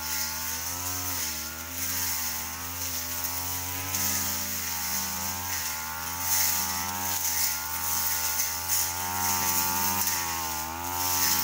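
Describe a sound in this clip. A petrol brush cutter's engine whines steadily, rising and falling in pitch.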